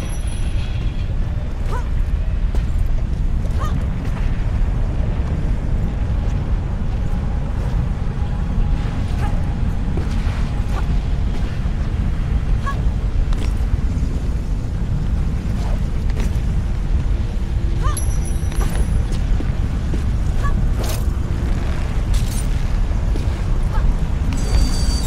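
Lava rumbles and bubbles with a deep steady roar.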